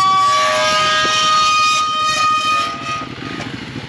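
A metal gate squeals loudly on its hinges.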